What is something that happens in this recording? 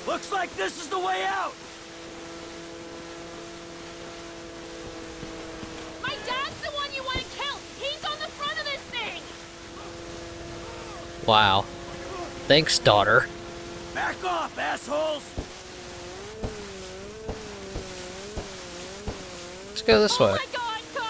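Water sprays and splashes behind a speeding jet ski.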